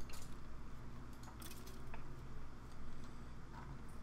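Blocks crunch as they are broken with a pick.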